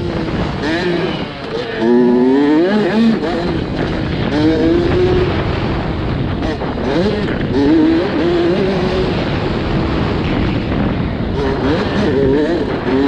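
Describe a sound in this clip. A dirt bike engine revs hard on board, rising and dropping through the gears.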